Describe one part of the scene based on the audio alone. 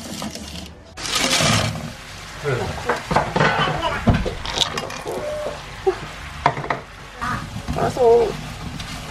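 Syrup bubbles and sizzles in a hot pan.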